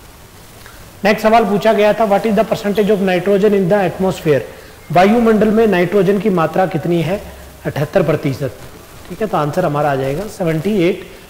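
A man speaks animatedly into a microphone, lecturing.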